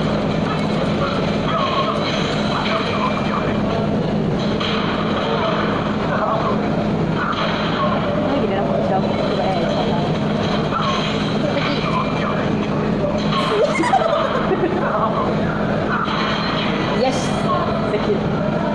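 Upbeat game music plays through a television speaker.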